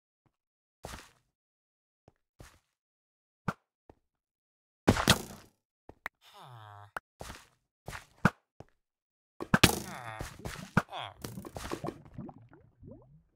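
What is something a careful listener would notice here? Footsteps crunch on loose dirt.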